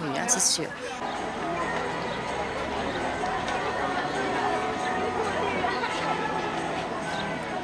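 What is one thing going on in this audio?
A crowd of people murmurs and sings outdoors.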